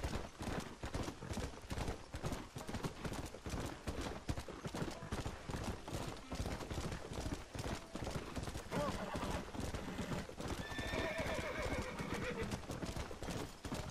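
Hooves pound rapidly on a dirt trail as a horse gallops.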